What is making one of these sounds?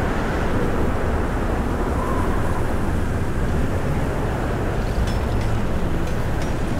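A loud, rumbling roar of wind and blasts fills the air.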